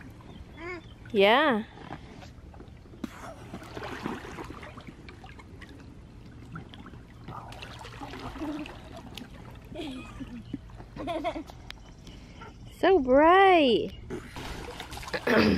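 Water splashes and laps gently.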